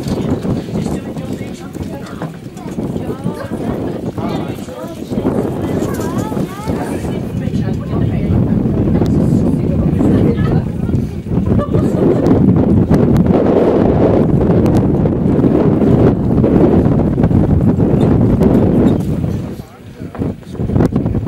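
Horse hooves thud on grass.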